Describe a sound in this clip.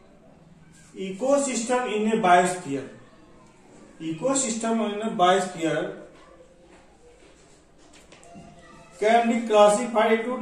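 A man speaks calmly and clearly, close by, with pauses.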